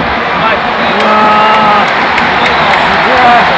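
A stadium crowd sings and chants in unison.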